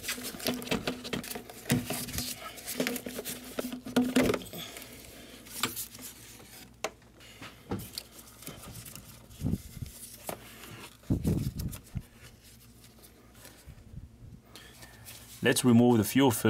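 Plastic parts click and knock under gloved hands.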